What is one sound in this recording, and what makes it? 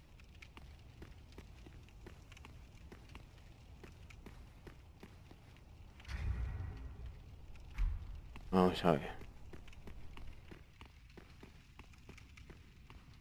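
Armoured footsteps clatter on a stone floor.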